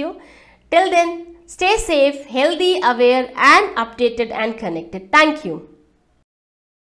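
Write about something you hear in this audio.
A young woman speaks warmly and cheerfully into a close microphone.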